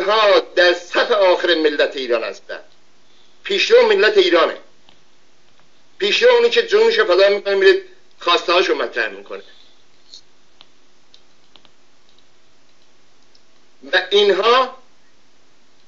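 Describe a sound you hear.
An elderly man speaks forcefully into a close microphone, in bursts with pauses.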